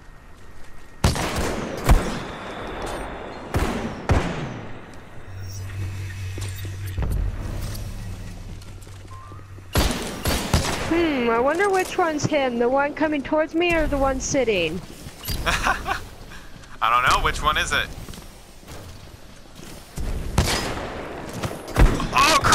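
A rifle fires sharp, loud shots now and then.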